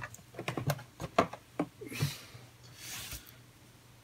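A cardboard box is set down on a desk with a light knock.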